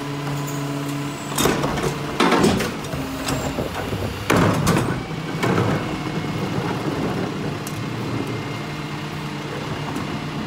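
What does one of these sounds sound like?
A garbage truck engine idles with a steady hum.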